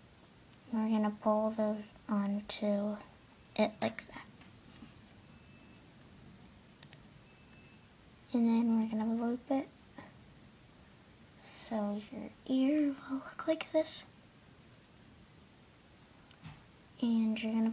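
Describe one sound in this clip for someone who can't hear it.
A metal hook clicks softly against a plastic loom.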